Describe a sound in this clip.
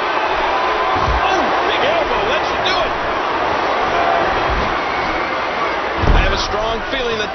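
Heavy thuds land on a wrestling ring mat.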